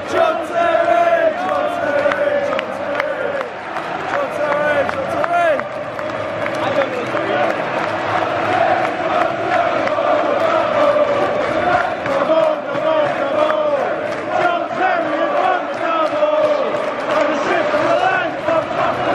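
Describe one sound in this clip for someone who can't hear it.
A large crowd of fans sings and chants loudly in an open stadium.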